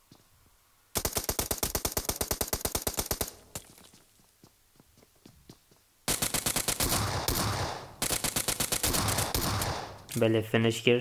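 A rifle fires rapid bursts at close range.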